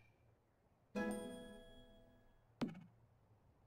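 A bright chime jingle plays.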